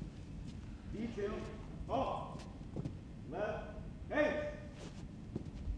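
A young man shouts drill commands in a large echoing hall.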